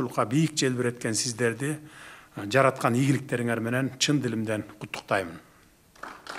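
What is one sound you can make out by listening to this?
A middle-aged man speaks formally into a microphone in a large room.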